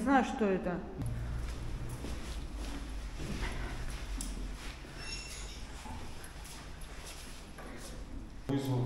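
Footsteps walk along a hallway.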